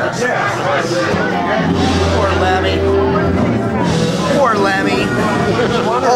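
A middle-aged man talks close up.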